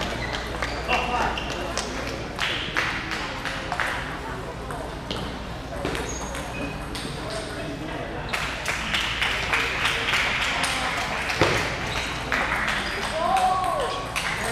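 Many people chatter in the background of a large echoing hall.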